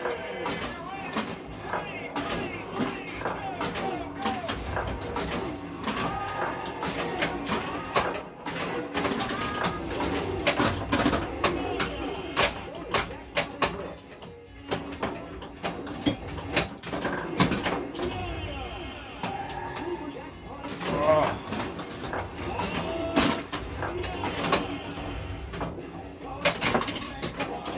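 A pinball clacks against bumpers and flippers with sharp knocks.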